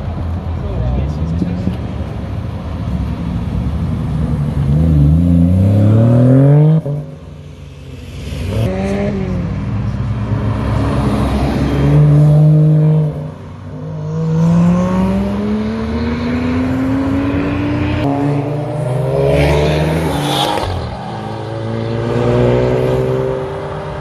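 Car engines rev loudly and roar past one after another.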